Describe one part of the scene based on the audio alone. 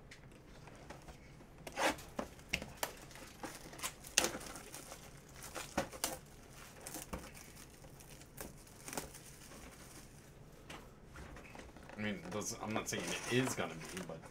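Card packs and foil wrappers crinkle and rustle in hands.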